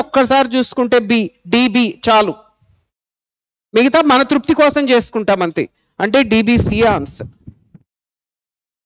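A middle-aged man speaks clearly into a close microphone, explaining.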